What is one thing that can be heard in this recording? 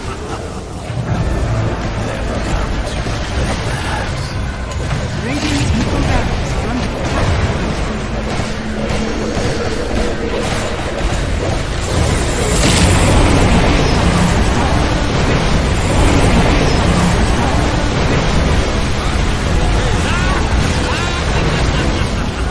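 Deep rumbling explosions go off again and again.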